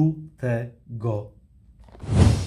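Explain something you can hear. A man speaks with animation close to the microphone.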